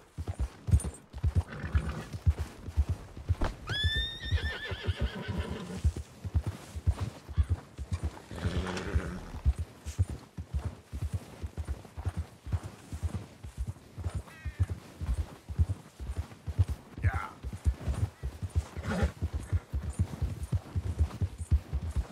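A horse's hooves thud steadily through deep snow.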